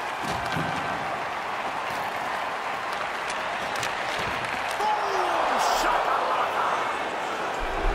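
A crowd murmurs and cheers steadily in a large echoing arena.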